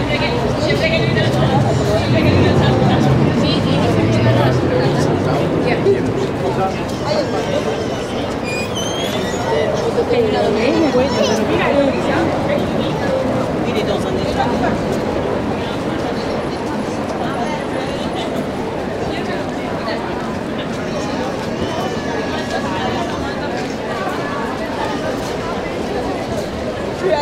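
Footsteps of many people patter on a paved street.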